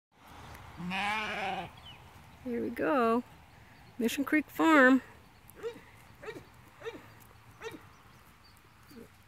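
Sheep tear and munch grass close by.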